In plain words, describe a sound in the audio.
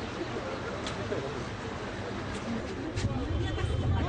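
A large crowd murmurs and chatters outdoors.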